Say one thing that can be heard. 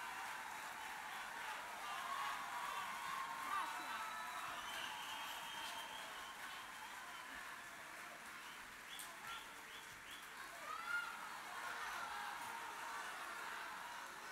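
A large crowd cheers and screams in a big echoing hall.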